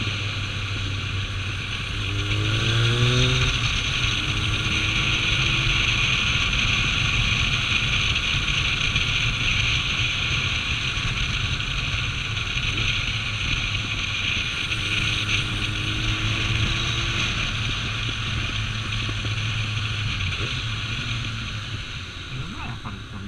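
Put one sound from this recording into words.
A motorcycle engine hums steadily close by.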